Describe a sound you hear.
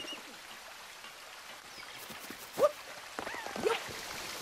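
A fountain splashes softly.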